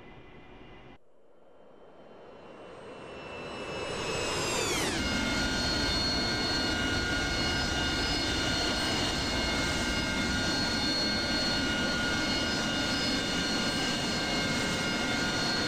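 A jet engine swells into a loud, high, steady whining roar.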